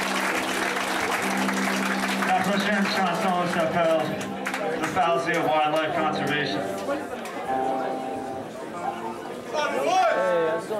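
A young man sings loudly into a microphone.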